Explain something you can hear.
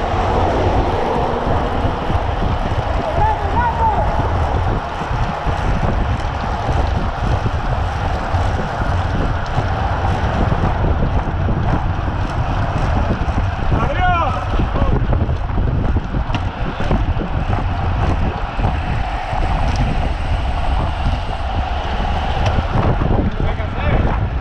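Wind rushes loudly over a moving microphone outdoors.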